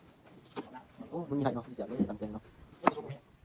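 A young man talks quietly close by.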